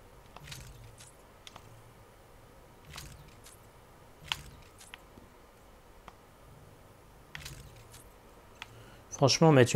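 Soft electronic menu clicks and whooshes sound now and then.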